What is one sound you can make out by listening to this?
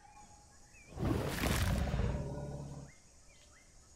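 A dinosaur roars loudly.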